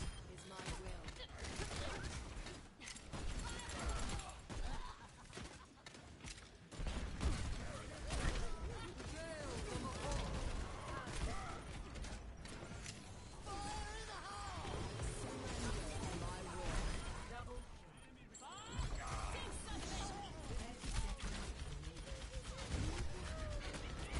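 Gunfire crackles in a video game.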